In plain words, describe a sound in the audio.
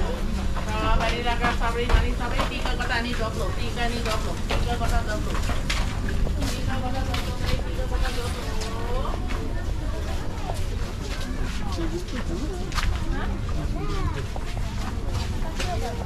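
A crowd of shoppers chatters nearby, outdoors.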